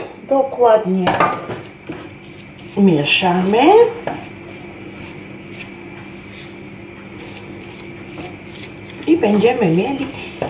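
A spatula stirs food in a frying pan.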